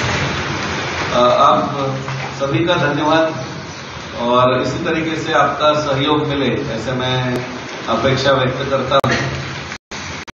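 A man speaks steadily into a microphone through a loudspeaker.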